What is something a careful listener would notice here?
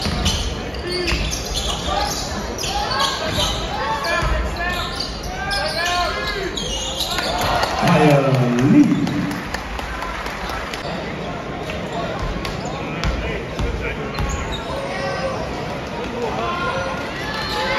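A large crowd chants and cheers loudly in an echoing arena.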